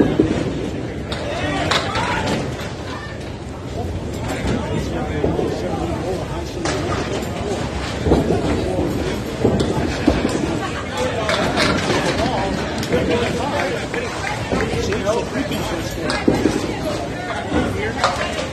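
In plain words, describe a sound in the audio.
Bowling balls roll down wooden lanes with a low rumble.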